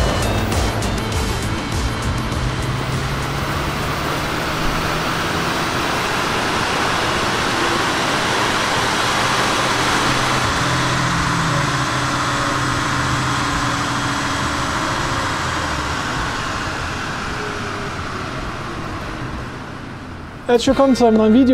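A car engine roars loudly, revving high.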